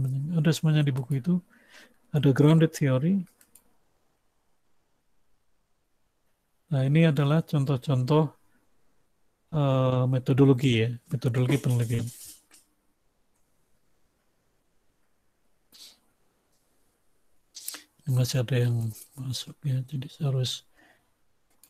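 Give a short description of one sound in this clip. A man speaks calmly through a headset microphone on an online call, in short phrases with pauses.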